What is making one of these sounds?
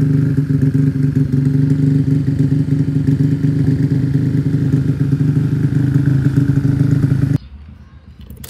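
A motor scooter engine idles with a deep, steady exhaust rumble.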